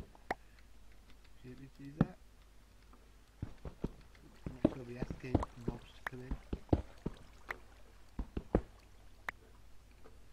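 A pickaxe chips at stone in quick, uneven knocks.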